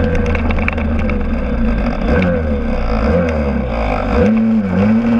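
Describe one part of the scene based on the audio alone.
A scooter engine hums close by, its pitch rising and falling as it rides through bends.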